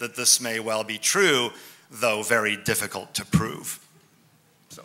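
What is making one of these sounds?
A middle-aged man speaks into a microphone with amusement.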